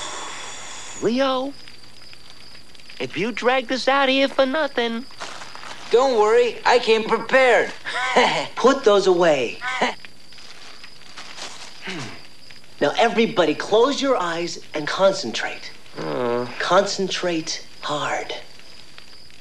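Young male voices talk with animation, close by.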